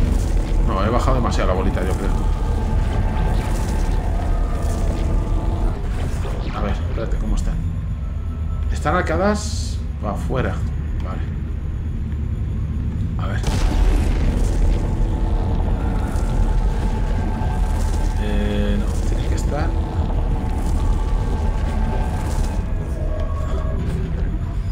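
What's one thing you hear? A game character fires a humming energy weapon in short bursts.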